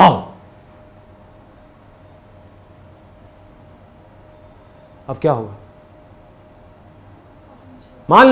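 A young man speaks calmly and close to a microphone, in short bursts.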